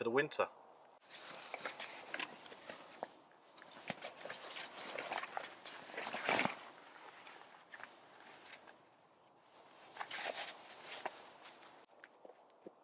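Fabric rustles as a man rummages in a backpack.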